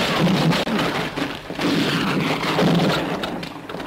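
A man groans nearby.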